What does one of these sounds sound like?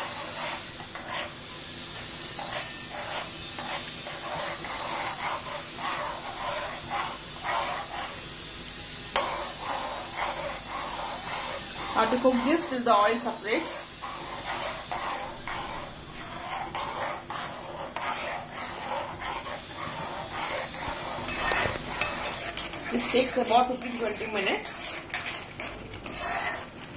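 A metal spoon scrapes and stirs a thick mixture in a metal pan.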